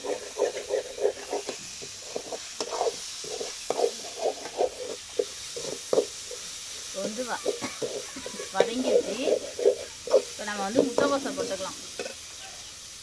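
A metal spatula scrapes and clatters against a metal pan.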